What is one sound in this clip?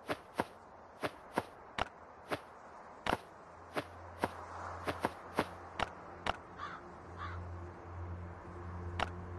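Short sharp interface clicks sound again and again.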